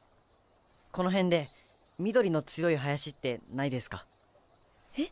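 A teenage boy asks a question calmly.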